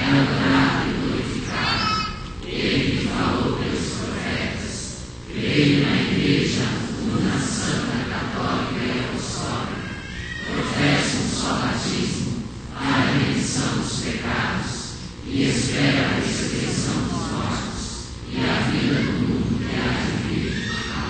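A man speaks steadily through a microphone and loudspeakers, in short phrases with pauses.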